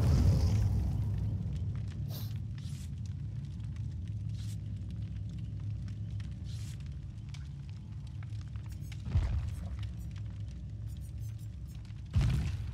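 A campfire crackles and pops steadily.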